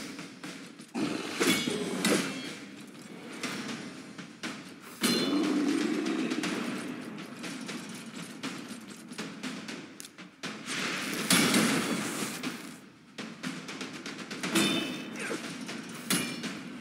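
Swords clash in a battle.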